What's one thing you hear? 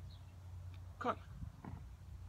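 A horse snorts once, close by.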